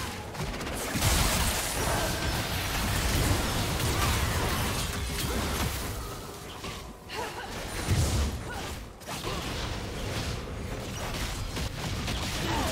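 Spell blasts and weapon strikes crash and whoosh in a game battle.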